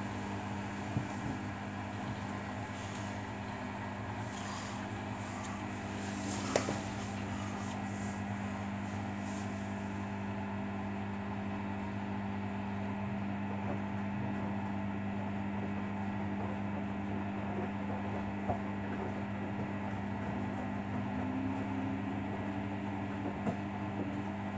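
Laundry thuds inside a washing machine drum.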